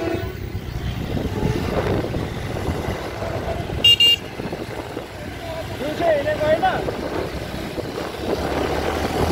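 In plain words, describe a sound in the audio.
A vehicle engine rumbles steadily as it drives along a road.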